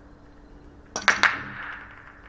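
A cue ball smashes into a rack of billiard balls with a loud crack.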